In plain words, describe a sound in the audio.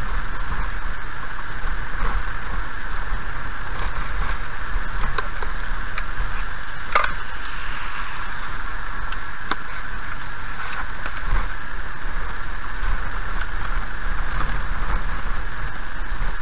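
Raindrops tap on a windshield.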